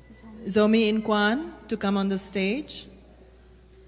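A woman sings a few short notes through a microphone in a large echoing hall.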